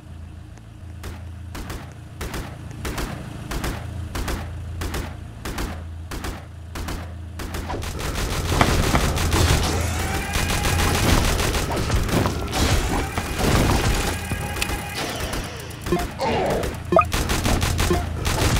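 Guns fire in quick, regular shots.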